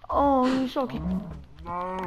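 A sword strikes a cow with a dull thud.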